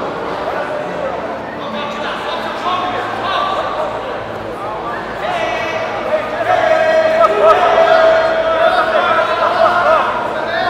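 A crowd of spectators chatters and calls out in a large indoor hall.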